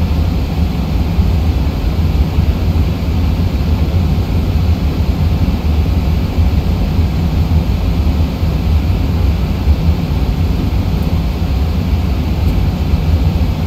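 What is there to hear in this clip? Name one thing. Jet engines rumble in a low, steady roar.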